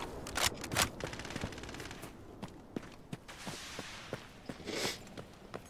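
Footsteps thud steadily on dirt and gravel.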